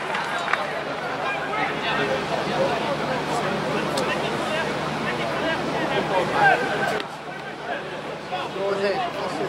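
A crowd of spectators chatters and calls out across an open outdoor ground.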